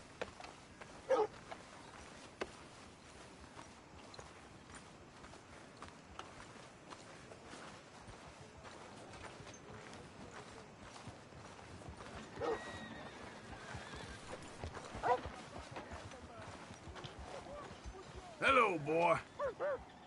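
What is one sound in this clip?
Footsteps crunch steadily on a dirt road.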